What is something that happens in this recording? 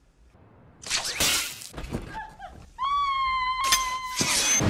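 An elderly woman screams loudly.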